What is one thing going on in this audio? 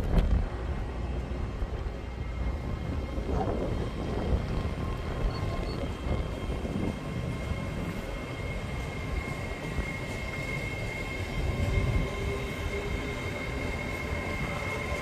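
An electric train's motors whine steadily as it passes.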